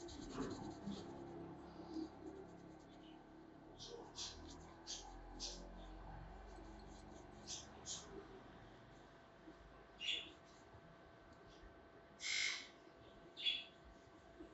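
Hands rub and scratch through hair with soft rustling.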